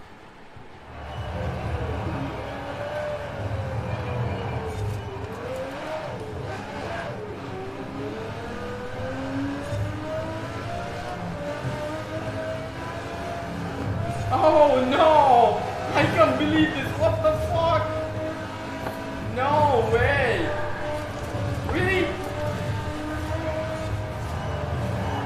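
A sports car engine roars and revs up and down through gear changes.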